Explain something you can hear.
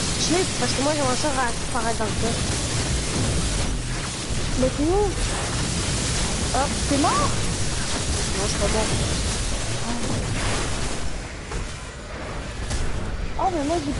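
Electric energy crackles and zaps.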